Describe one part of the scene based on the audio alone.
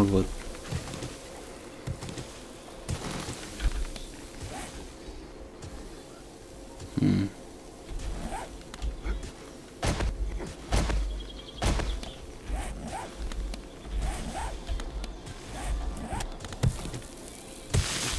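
A tool strikes rock with dull thuds.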